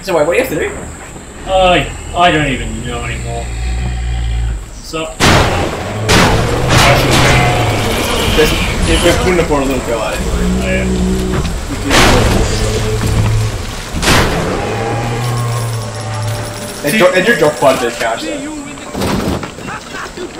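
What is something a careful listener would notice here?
Gunshots blast from a video game.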